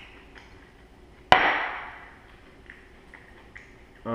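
A glass is set down on a counter with a knock.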